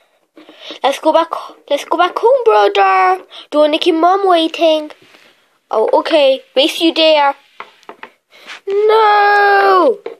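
A small plastic toy knocks against a wooden shelf.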